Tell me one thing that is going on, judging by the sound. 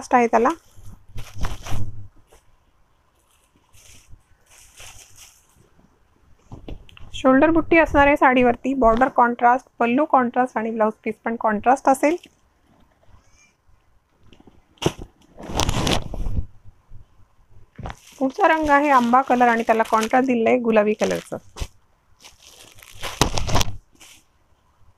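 Fabric rustles as it is unfolded and handled.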